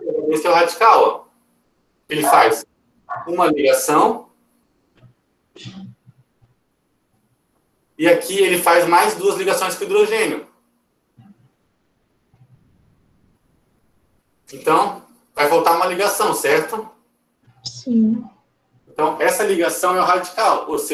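A man explains calmly and clearly, close to a microphone, with pauses.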